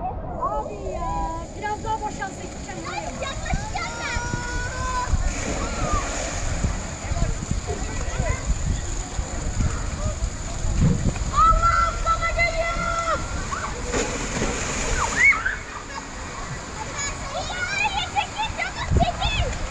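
Water rushes down a plastic slide.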